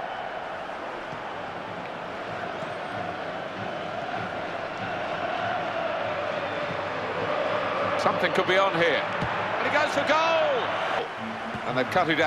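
A large stadium crowd roars steadily, swelling louder toward the end.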